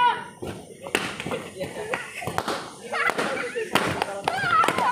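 Balloons pop with sharp bangs.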